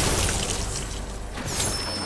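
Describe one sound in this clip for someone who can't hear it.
A crackling electric zap sounds.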